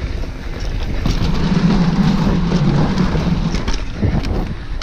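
Bicycle tyres thump over wooden boards.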